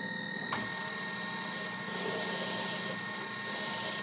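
A metal file rasps against a spinning metal part.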